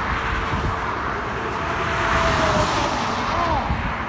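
A truck roars by and fades into the distance.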